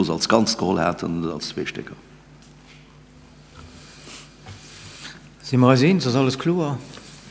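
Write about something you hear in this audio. An older man speaks calmly into a microphone, pausing between phrases.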